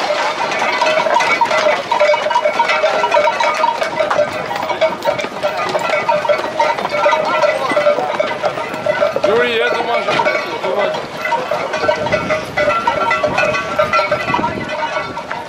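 Many horses' hooves thud on dry dirt.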